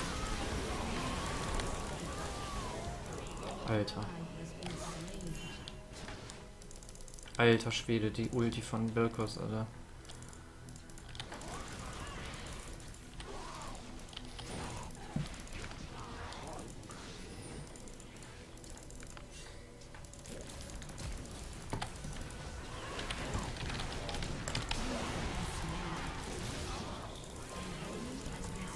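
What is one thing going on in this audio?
Game spells whoosh and blast in bursts.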